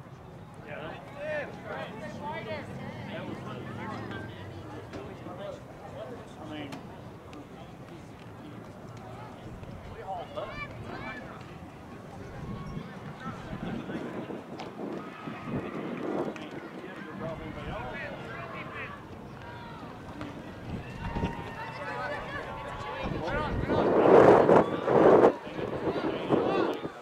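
Young male players shout to one another outdoors, some far off and some close.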